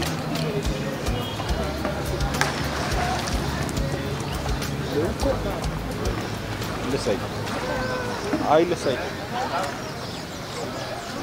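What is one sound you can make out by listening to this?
Water splashes and laps as people float and paddle.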